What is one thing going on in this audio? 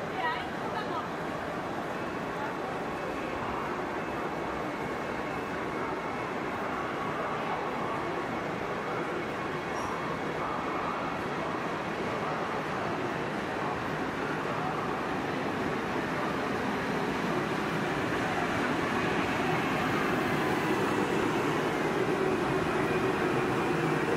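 A crowd murmurs on a busy platform.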